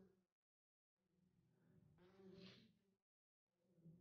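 A woman speaks calmly and with emotion, close by.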